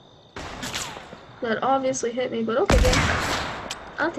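An assault rifle fires shots.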